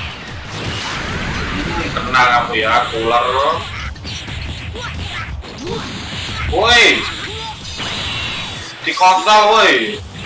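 Energy blasts and punches whoosh and crash in a fighting game.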